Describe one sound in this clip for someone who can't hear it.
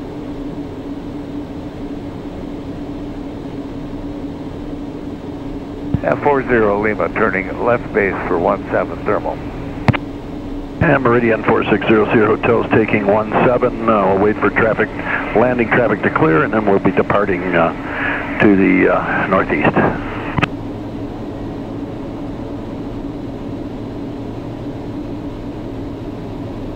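An aircraft engine drones steadily inside a small cockpit.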